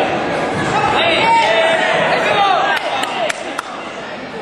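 Sharp thuds of kicks land during a fight.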